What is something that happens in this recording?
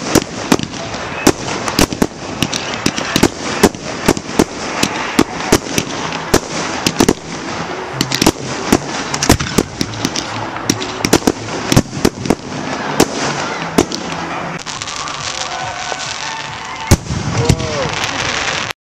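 Fireworks bang and pop in quick bursts.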